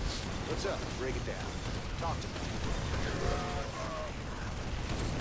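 Gunfire and explosions rattle in a battle.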